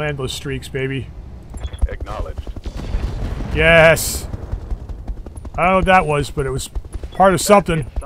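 Heavy guns fire and explosions boom.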